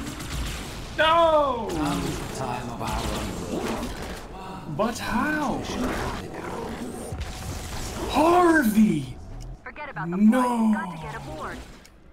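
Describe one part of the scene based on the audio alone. A man talks into a headset microphone with animation.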